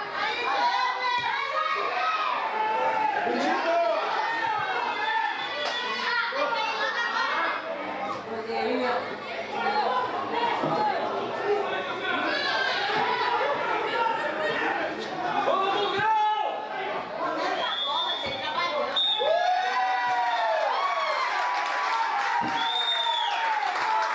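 Young men shout across an outdoor football pitch.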